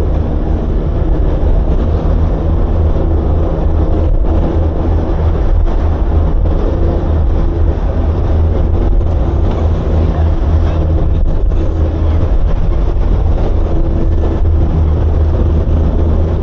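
A boat's outboard engine drones steadily at speed.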